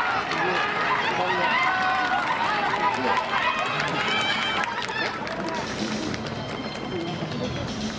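Runners' feet patter quickly on a track.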